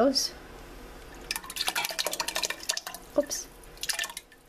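Thick sauce pours from a jar and splashes into a pot of liquid.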